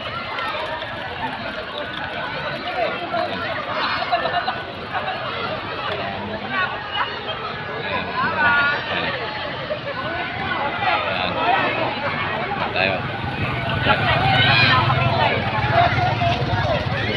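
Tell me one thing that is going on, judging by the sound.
A crowd of people chatters and shouts outdoors.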